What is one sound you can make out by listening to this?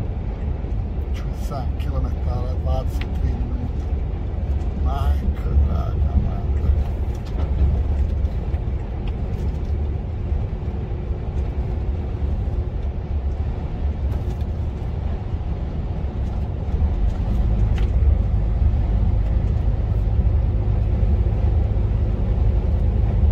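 A truck engine hums steadily and low while driving.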